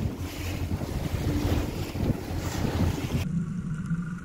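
Water rushes and splashes loudly against a moving boat.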